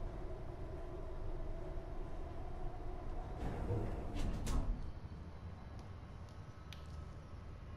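A lift hums with a low rumble as it moves.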